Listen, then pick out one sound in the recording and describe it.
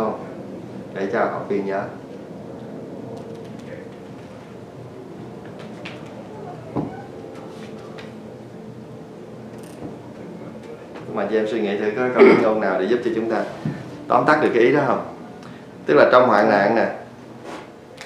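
A man speaks calmly and with animation close by.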